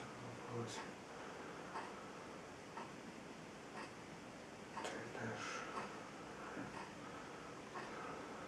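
A small object clicks repeatedly in someone's hands.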